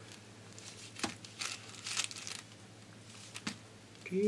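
Paper crinkles and rustles as it is folded.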